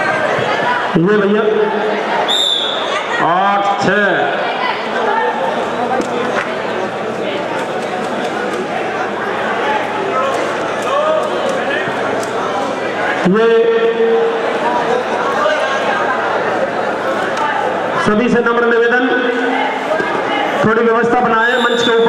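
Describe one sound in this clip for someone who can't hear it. Men in a crowd shout encouragement loudly at times.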